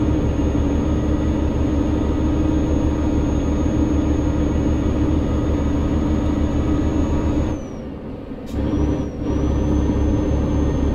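A diesel semi truck engine drones while cruising along a road.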